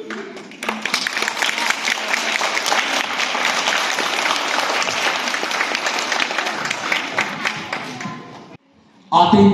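A crowd of children and adults claps and cheers.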